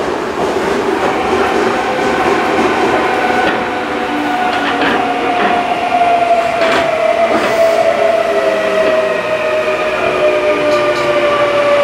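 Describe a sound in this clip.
An electric commuter train's motors whine, falling in pitch as the train slows.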